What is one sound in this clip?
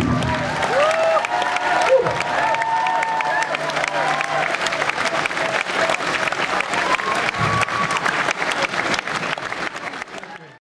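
A live band plays guitars and drums.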